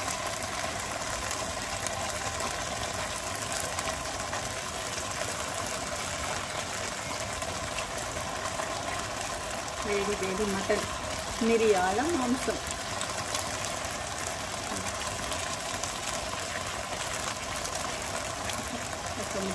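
Hands squish and mash soft rice.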